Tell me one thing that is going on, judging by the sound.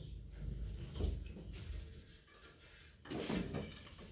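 A metal pan clanks as it is lifted and set down.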